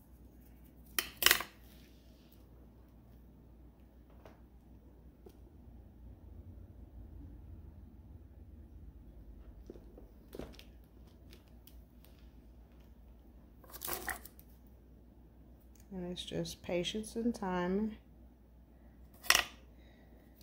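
Small hard pieces tap and click against a hard case.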